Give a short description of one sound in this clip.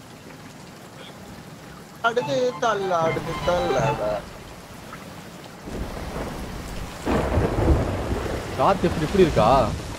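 Stormy sea waves crash against a wooden ship.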